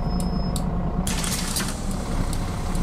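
Bus doors open with a hiss of air.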